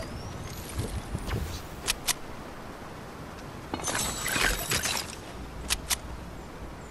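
Building pieces snap into place with sharp clicks.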